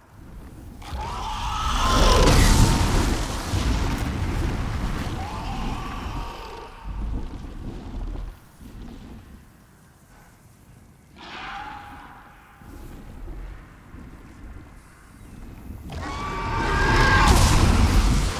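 A fireball roars and bursts into flames.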